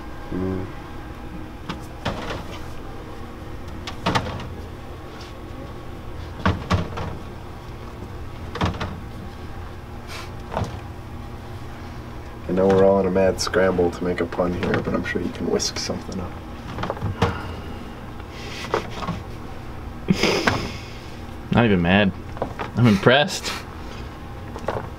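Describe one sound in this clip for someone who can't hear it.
Hands brush and pat powder across a tray with soft scraping sounds.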